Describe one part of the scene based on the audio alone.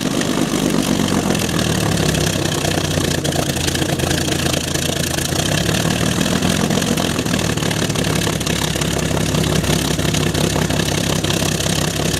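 A propeller aircraft engine idles loudly nearby with a deep, throbbing roar.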